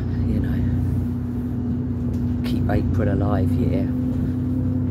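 A middle-aged woman speaks close to the microphone with animation.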